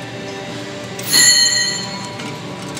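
Metal parts clink against each other.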